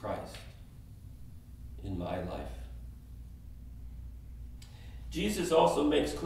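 A middle-aged man speaks calmly through a microphone, with pauses, in a room with a slight echo.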